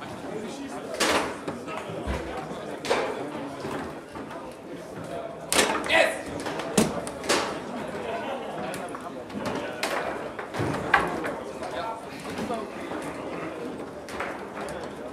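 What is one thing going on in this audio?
A table football ball is struck with sharp knocks.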